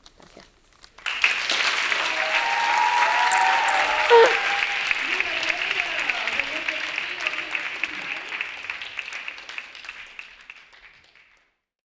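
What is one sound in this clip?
An audience applauds in a large hall, slowly fading.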